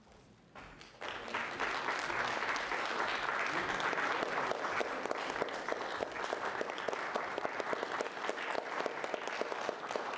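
An audience claps loudly in a hall.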